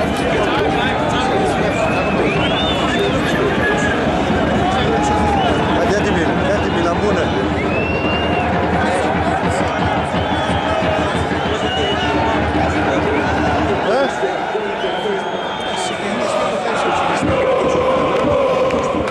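A large stadium crowd roars and chants loudly outdoors.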